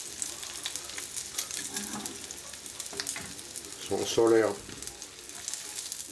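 A metal fork scrapes against a frying pan.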